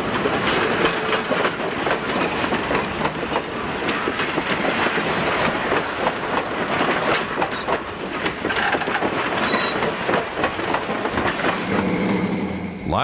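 A train rumbles slowly along the tracks.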